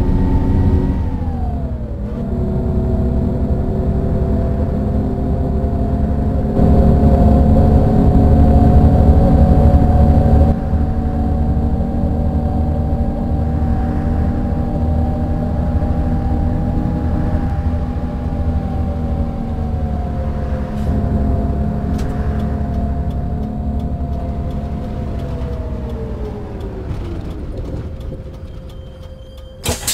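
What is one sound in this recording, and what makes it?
A bus engine hums steadily, dropping in pitch near the end as the bus slows.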